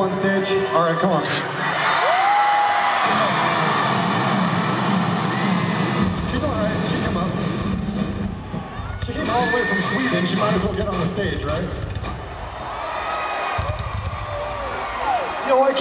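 A rock band plays loudly in a large echoing hall.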